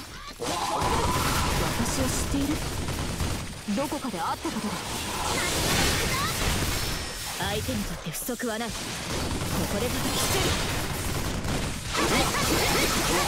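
Magical blasts burst and crackle loudly.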